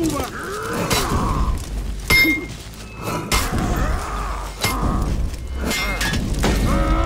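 Metal weapons clash and clang in sharp, ringing strikes.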